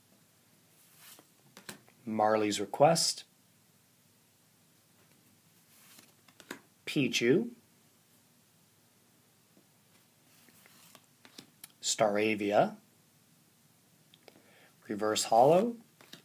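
Playing cards slide and rustle against each other in hands.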